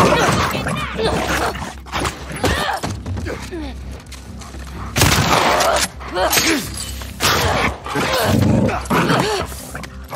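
Bodies scuffle and thud against a wooden floor in a struggle.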